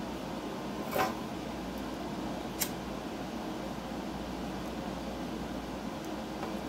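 A lighter clicks as it is struck.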